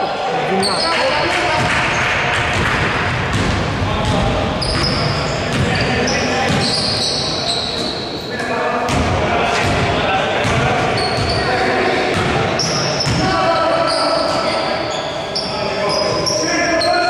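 A basketball bounces with dull thuds on the floor.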